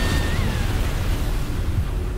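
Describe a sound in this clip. A monster lets out a loud, screeching roar.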